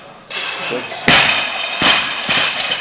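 A loaded barbell crashes onto the floor and bounces.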